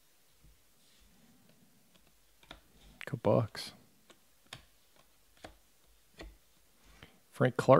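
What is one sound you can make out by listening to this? Trading cards rustle and flick as a hand shuffles through them.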